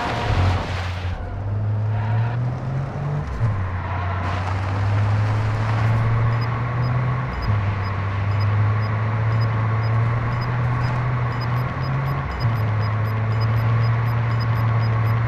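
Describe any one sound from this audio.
A car engine drones steadily and shifts gears as the car drives along.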